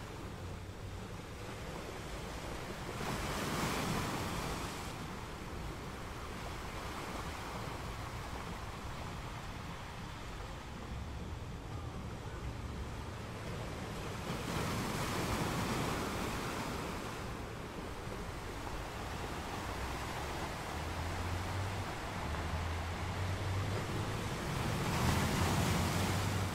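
Water washes and swirls steadily among rocks.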